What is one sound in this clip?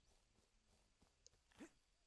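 Water splashes as a creature bursts out.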